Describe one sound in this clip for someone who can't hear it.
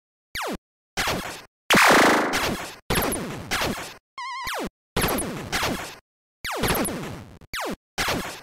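Retro arcade explosions crackle in short bursts.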